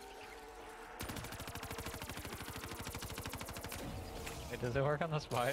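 A rapid-fire gun shoots in a fast steady burst.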